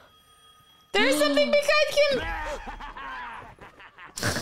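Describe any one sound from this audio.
A second young woman reacts with an exclamation into a nearby microphone.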